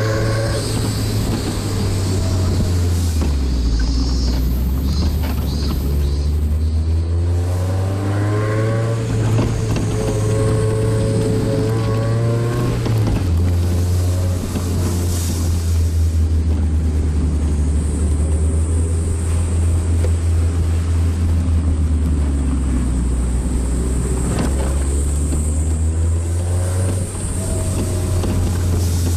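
A car engine hums and changes pitch as gears shift.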